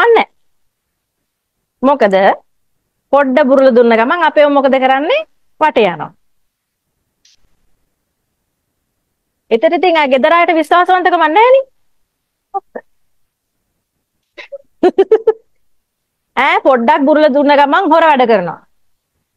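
A young woman talks cheerfully and close by, with pauses.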